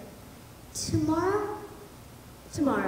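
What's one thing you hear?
A young girl speaks an expressive line.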